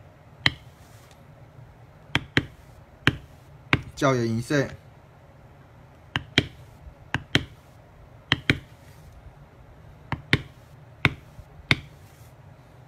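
A mallet taps a metal stamping tool into leather in sharp, evenly paced knocks.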